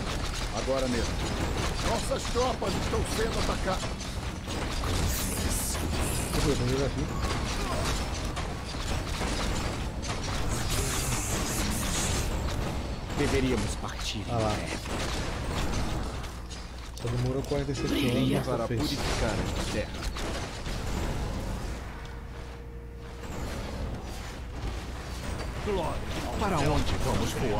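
Clashing weapons and blasts of magic sound from a game battle.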